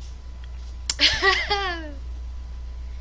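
A teenage boy laughs loudly close to the microphone.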